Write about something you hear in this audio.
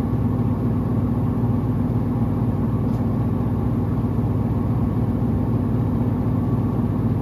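A washing machine drum hums and rumbles steadily as it spins.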